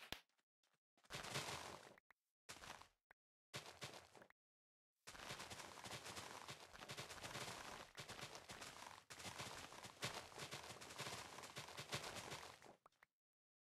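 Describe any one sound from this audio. Game plant blocks break with quick rustling crunches.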